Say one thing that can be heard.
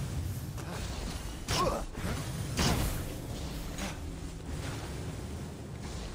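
Wings whoosh as a figure glides through the air.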